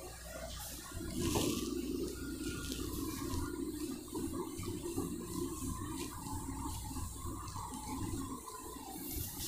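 A duster rubs across a whiteboard.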